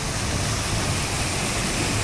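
A car drives through floodwater with a rushing splash.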